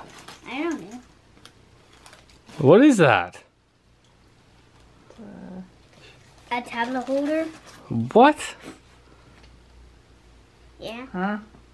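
A young boy talks excitedly, close by.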